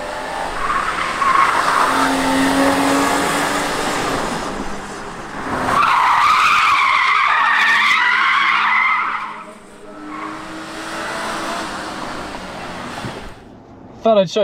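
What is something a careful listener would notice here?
Tyres screech loudly on pavement.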